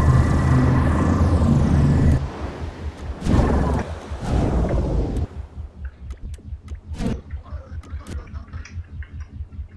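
A jetpack's thrusters roar and hiss, then settle to a low pulsing hum.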